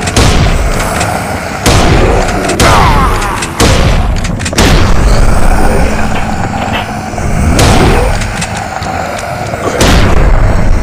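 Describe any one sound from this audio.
A shotgun fires loud blasts again and again.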